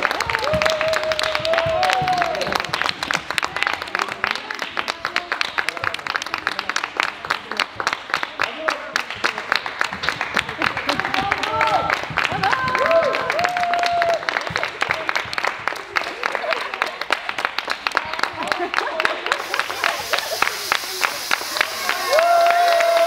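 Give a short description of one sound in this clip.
Young children cheer and shout with high voices in a large echoing hall.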